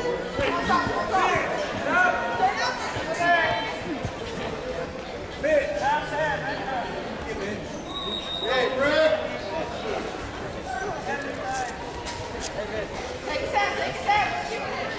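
Spectators shout and cheer loudly in an echoing hall.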